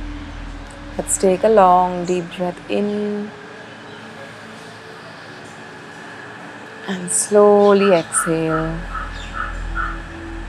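A young woman speaks softly and calmly close by.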